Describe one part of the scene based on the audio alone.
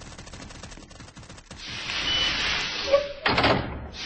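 A heavy metal door slides open.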